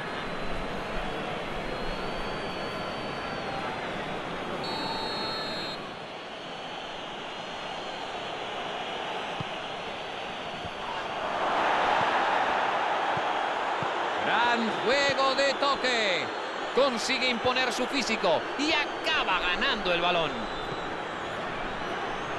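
A stadium crowd roars steadily, swelling louder for a moment.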